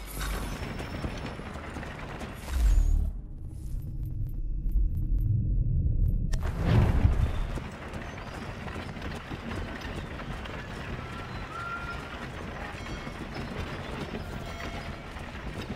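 A wooden cart rattles as it rolls over cobblestones.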